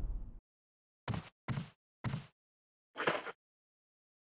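Footsteps fall slowly on a hard floor.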